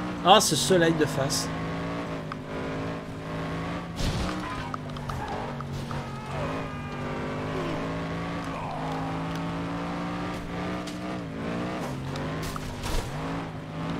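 A car crashes with loud metallic bangs.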